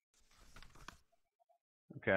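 A paper page flips over with a soft rustle.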